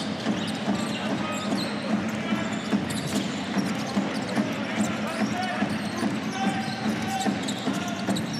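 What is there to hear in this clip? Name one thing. A basketball bounces repeatedly on a wooden court.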